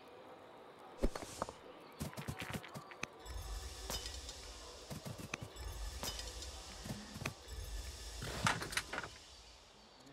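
Swords clash and thud in a brief fight.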